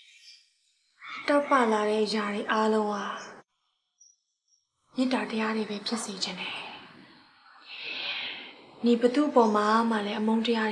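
A young woman speaks firmly and clearly up close.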